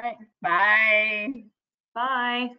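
A woman laughs brightly over an online call.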